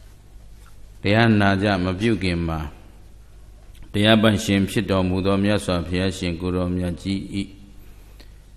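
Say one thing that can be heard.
A man speaks with emotion into a microphone, heard through a loudspeaker.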